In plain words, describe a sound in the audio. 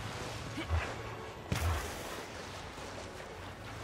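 Water splashes as someone wades through it.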